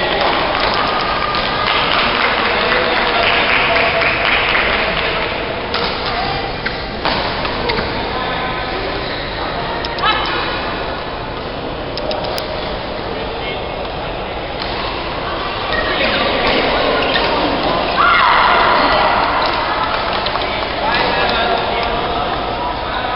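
Men talk and call out in the echoing hall.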